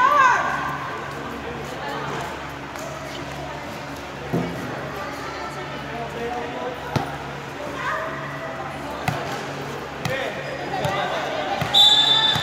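Women call out and chatter in a large echoing hall.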